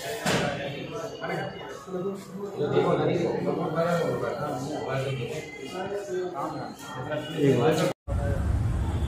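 Several men talk together nearby.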